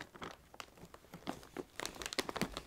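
A plastic snack bag crinkles as it is handled.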